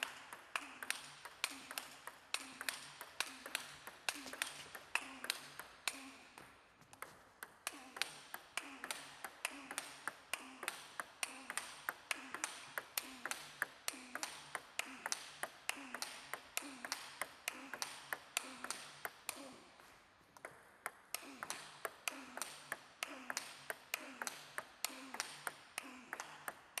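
A table tennis ball clicks rapidly back and forth between paddle and table in an echoing hall.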